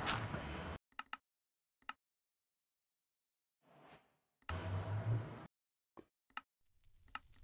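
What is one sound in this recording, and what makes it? Menu buttons click softly.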